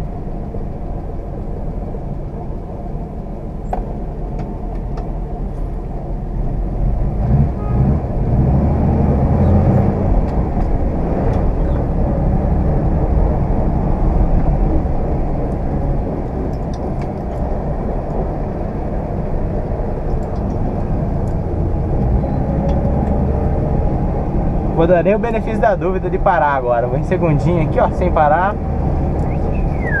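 An old car engine rumbles steadily from inside the car as it drives.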